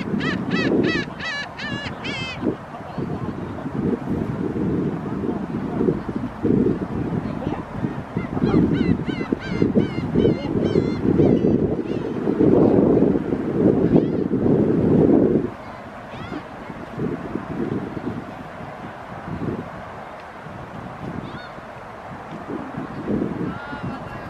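Wind gusts loudly across the microphone outdoors.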